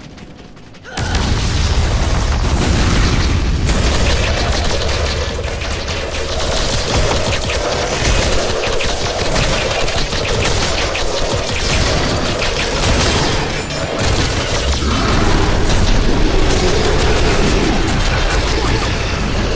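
Magic blasts and weapon strikes crash and crackle in a hectic fight.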